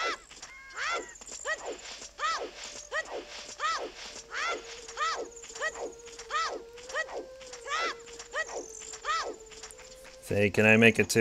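Quick footsteps patter along in a steady rhythm.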